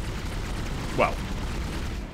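A gun fires a single sharp shot.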